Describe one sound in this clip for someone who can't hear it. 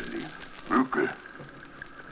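A man shouts loudly.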